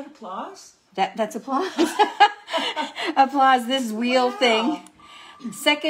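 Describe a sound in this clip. An elderly woman laughs heartily nearby.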